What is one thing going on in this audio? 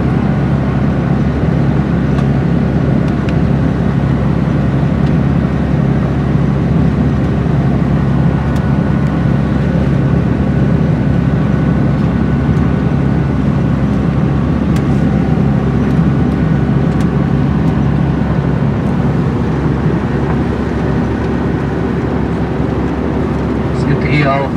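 A bus's interior rattles and clicks as it bumps along.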